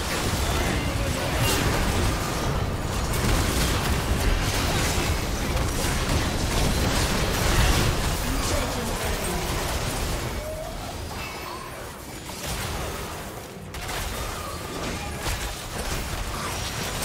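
Magic blasts and hits crackle and boom in a busy fight.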